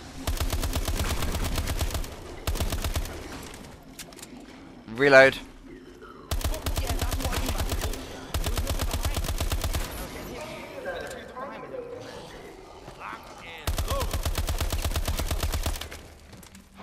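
Automatic guns fire rapid bursts.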